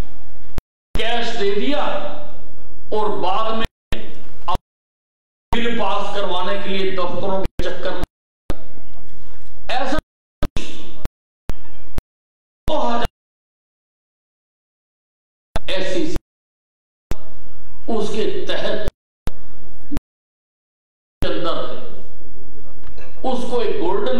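An elderly man speaks with animation through a microphone and loudspeakers, pausing often.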